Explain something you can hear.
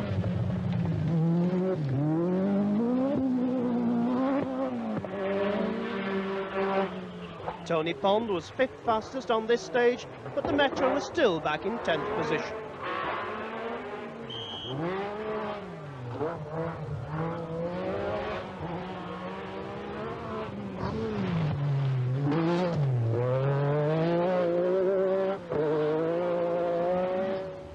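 A rally car engine roars and revs hard as the car races past.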